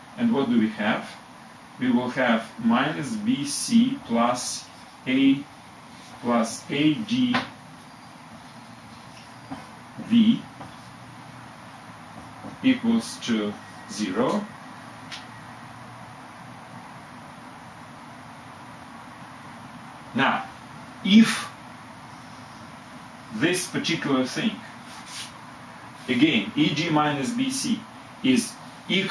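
A middle-aged man speaks calmly and explains nearby.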